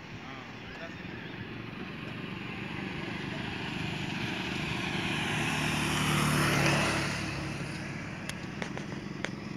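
A car passes by, growing louder and then fading.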